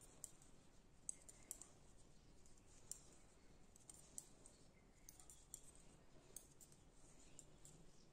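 Knitting needles click and tick softly against each other.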